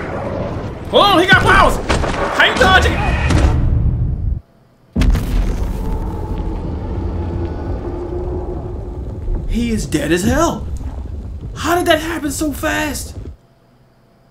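A young man exclaims loudly and excitedly into a microphone.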